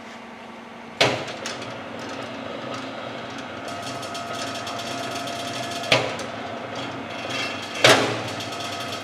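A switch clicks on a machine.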